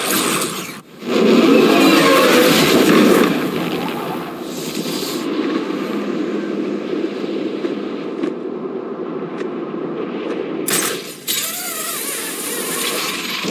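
Wind rushes loudly and steadily past a gliding figure.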